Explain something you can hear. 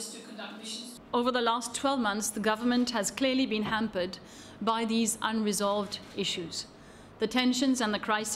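A woman speaks calmly into microphones.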